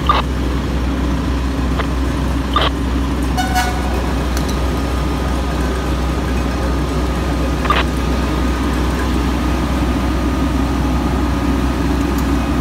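A fire engine's diesel engine idles with a steady low rumble.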